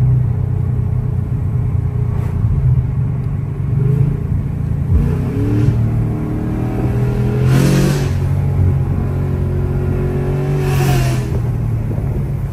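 A car engine rumbles deeply and revs up as the car speeds along.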